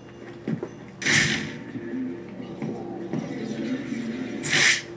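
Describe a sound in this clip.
Flames whoosh and roar in short bursts.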